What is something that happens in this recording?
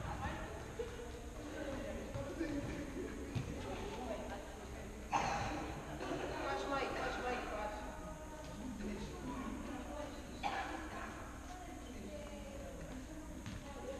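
Men shout to each other in a large echoing hall.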